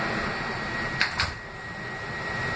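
Subway doors slide shut with a thud.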